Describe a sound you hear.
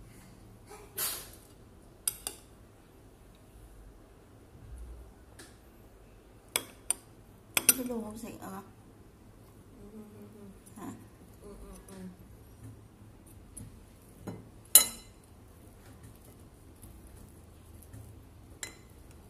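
A metal spoon clinks against a plate.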